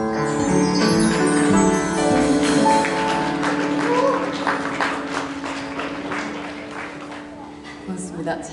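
A live band plays music, then fades out.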